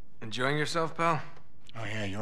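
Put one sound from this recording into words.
A young man speaks calmly and wryly.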